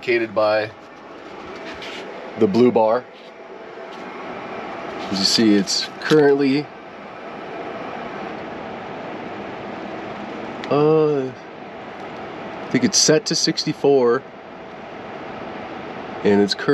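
A portable air conditioner hums with a steady, growing whir.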